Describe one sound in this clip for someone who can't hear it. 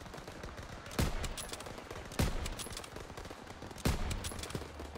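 A rifle fires several loud, booming shots with a short echo.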